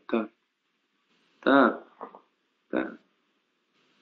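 A young man speaks calmly over an online call.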